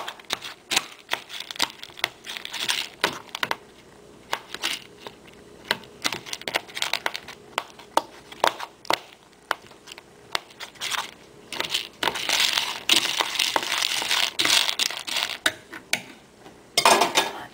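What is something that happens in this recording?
A spoon clinks and scrapes against a bowl of dry food.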